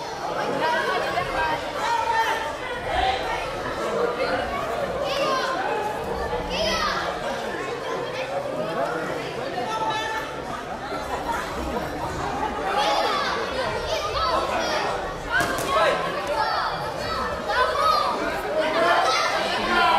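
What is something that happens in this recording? A crowd of children and adults chatters and calls out in an echoing hall.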